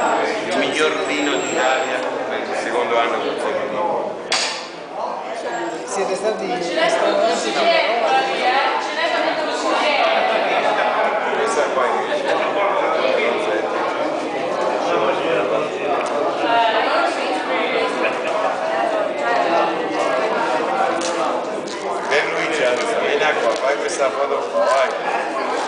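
Many men and women chatter at once in a room.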